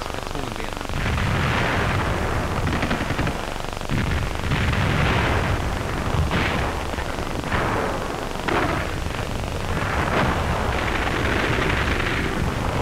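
Shells explode with deep, rumbling booms.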